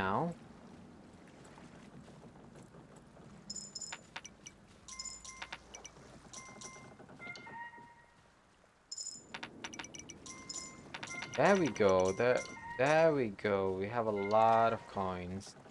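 Rain patters steadily on water.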